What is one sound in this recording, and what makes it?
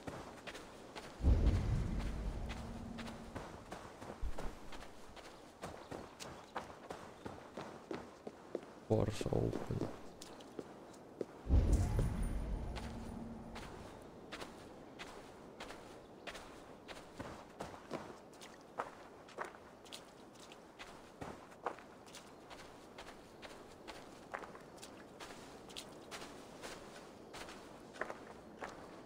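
Footsteps crunch on grass and dirt at a steady walking pace.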